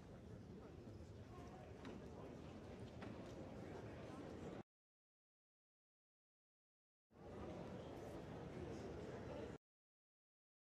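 A large audience murmurs and chatters in an echoing hall.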